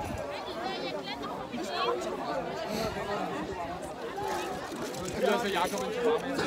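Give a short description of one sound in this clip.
Several young men talk and chatter close by, outdoors.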